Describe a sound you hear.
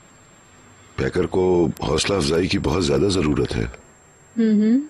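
A middle-aged man speaks softly and close by.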